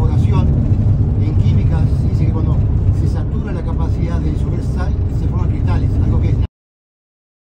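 A vehicle engine rumbles loudly while driving.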